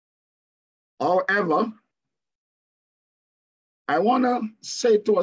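A middle-aged man speaks calmly over an online call, in short bursts with pauses.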